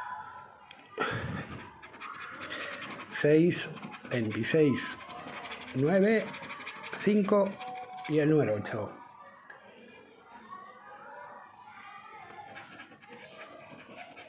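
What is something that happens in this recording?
A fingernail scratches at the coating of a paper card.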